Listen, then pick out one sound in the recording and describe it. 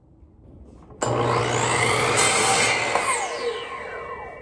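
A miter saw whines loudly as it cuts through wood.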